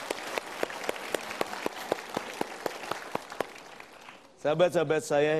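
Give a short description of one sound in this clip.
An audience applauds in a hall.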